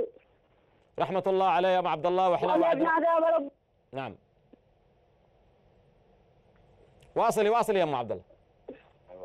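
A man speaks with animation into a microphone, in short bursts.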